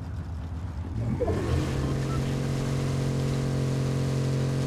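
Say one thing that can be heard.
A car engine revs up and roars as the car speeds off.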